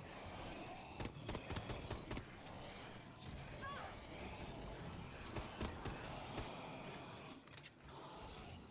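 Gunshots fire in short, sharp bursts.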